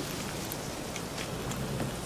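Footsteps crunch quickly over dry leaves.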